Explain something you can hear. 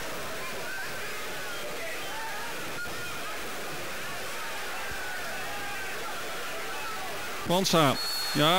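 A large crowd murmurs and cheers in a big open stadium.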